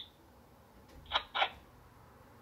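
Dice clatter onto a game board.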